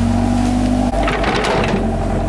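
An excavator bucket scrapes and digs into dirt.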